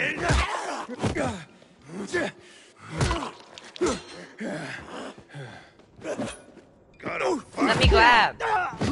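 Heavy blows thud into a body.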